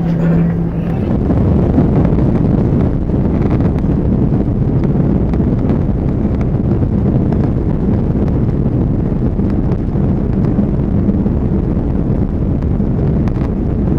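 Tyres rumble and thump over the runway.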